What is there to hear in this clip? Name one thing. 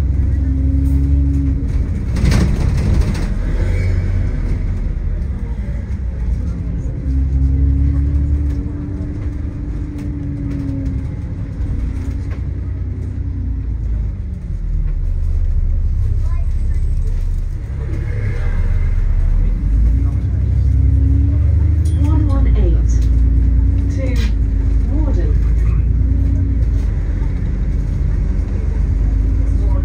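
A bus engine hums and rumbles steadily as the bus drives along.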